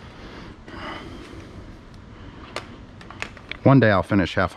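Plastic parts click and rattle as hands handle them.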